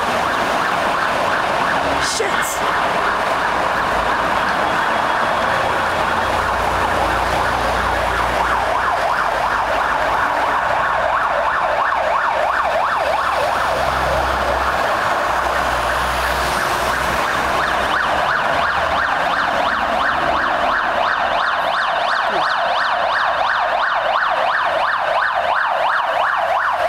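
A fire engine siren wails loudly with a fast warble.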